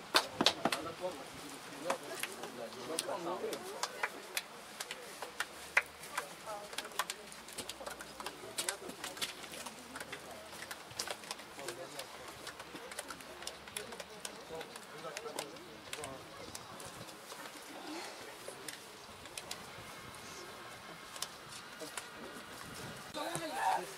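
Players slap hands together in quick, sharp claps.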